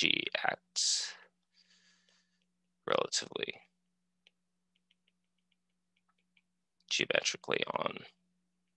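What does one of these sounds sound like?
A man lectures calmly, heard through a microphone on an online call, with pauses between phrases.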